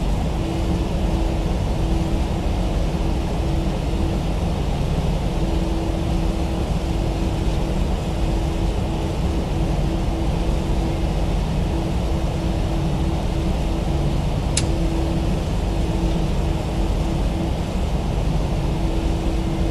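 Jet engines hum steadily at idle as an airliner taxis.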